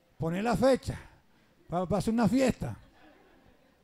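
A man preaches loudly and with passion through a microphone.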